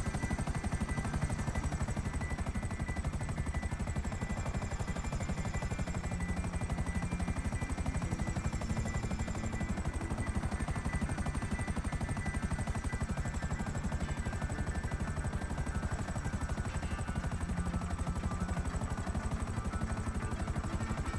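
A helicopter's rotor thumps steadily and close by.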